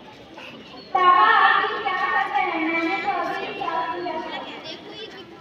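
A young woman speaks with animation, close by.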